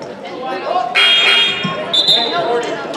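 A referee blows a shrill whistle.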